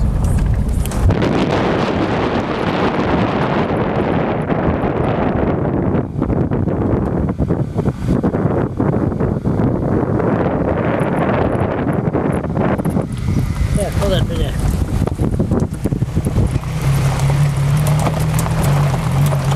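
Wind rushes loudly past an open car window.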